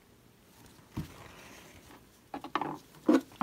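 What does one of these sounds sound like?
A small plastic container knocks lightly as a hand picks it up.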